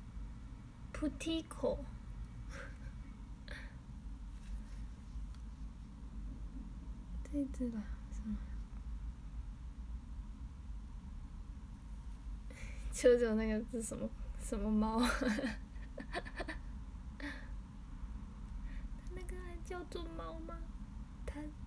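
A young woman speaks softly and playfully, close by.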